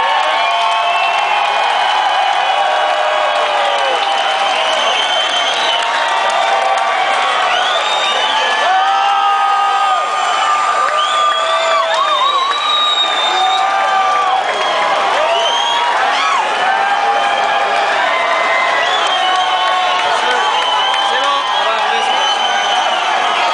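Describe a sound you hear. A man sings into a microphone over the band.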